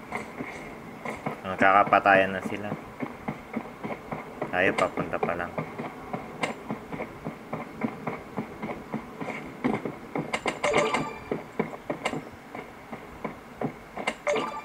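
Video game sound effects play in short bursts from a small phone speaker.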